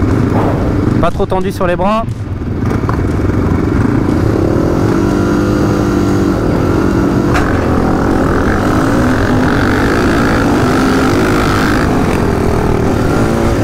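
A motocross engine revs up sharply and accelerates hard.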